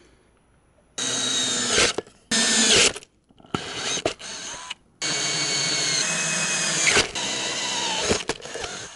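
A cordless drill whines loudly as a hole saw cuts into plastic.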